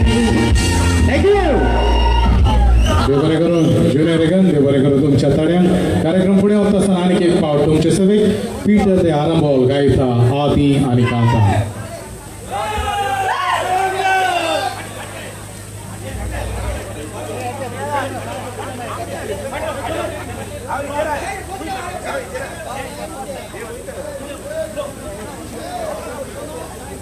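A band plays brass and drums through loudspeakers.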